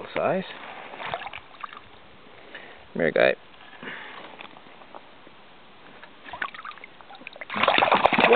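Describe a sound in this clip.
Shallow water splashes around a hand.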